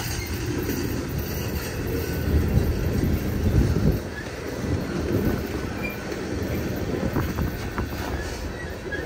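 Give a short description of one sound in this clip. A freight train rumbles past close by, its wheels clacking over the rail joints.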